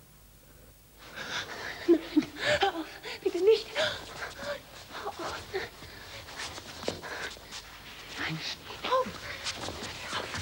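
A woman breathes heavily and sighs.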